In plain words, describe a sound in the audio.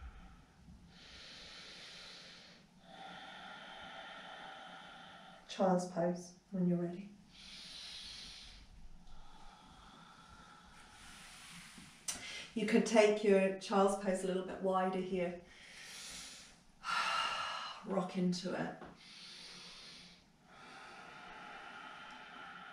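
A woman breathes slowly and deeply.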